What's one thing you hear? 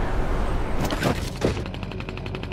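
A character lands with a heavy thud.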